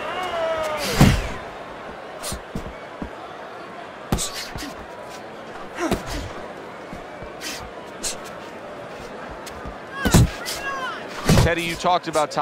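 Boxing gloves land heavy punches with dull thuds.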